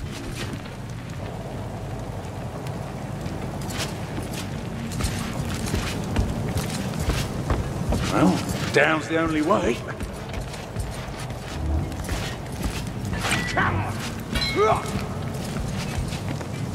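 Footsteps thud steadily on wooden planks.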